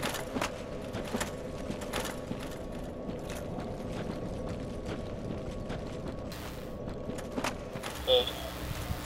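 An armoured figure climbs a wooden ladder with clanking steps.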